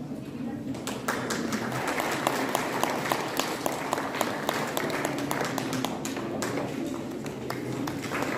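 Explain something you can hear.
A small group of people clap their hands.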